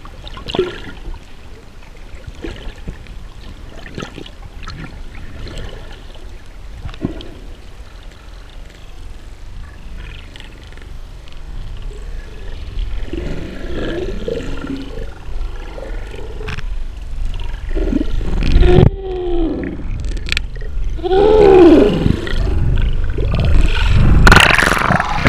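Muffled water rushes and bubbles underwater.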